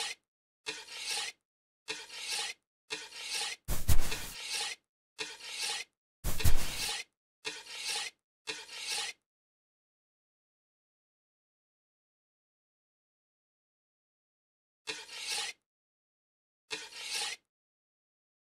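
A shovel scrapes and digs into loose dirt in short bursts.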